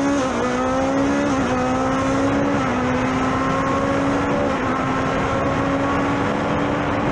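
A racing car engine roars loudly at high revs, with small dips in pitch at gear shifts.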